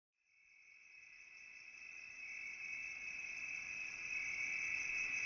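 Music plays, fading in gently at the start.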